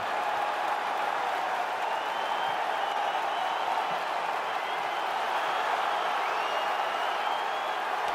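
A man announces loudly into a microphone over a loudspeaker.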